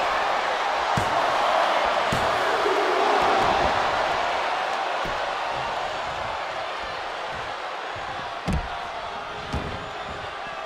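Heavy thuds of bodies hitting the floor ring out.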